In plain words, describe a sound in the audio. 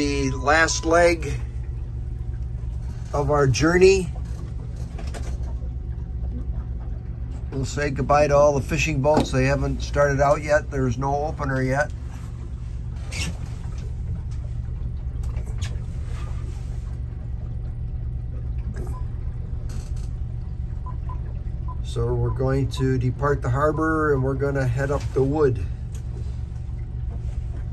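A boat engine hums steadily and low.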